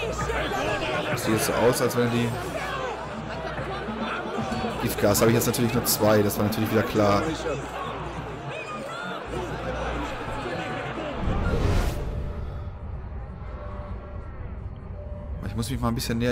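A large crowd of men and women murmurs and chatters all around.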